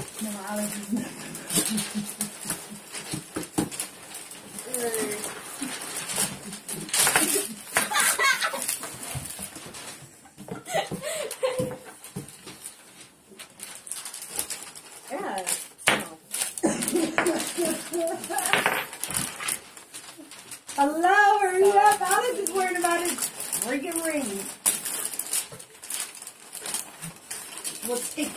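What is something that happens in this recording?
Children laugh and talk excitedly nearby.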